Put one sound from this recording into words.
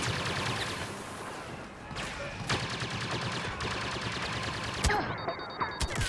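A blaster rifle fires rapid laser shots.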